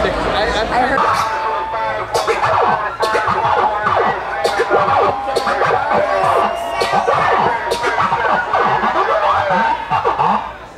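Loud electronic music plays with a thumping beat and sustained synth tones.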